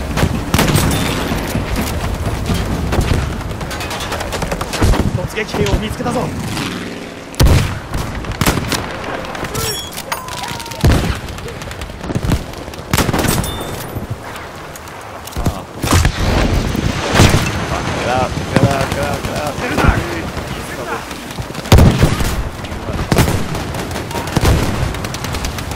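A rifle fires loud single shots with sharp cracks.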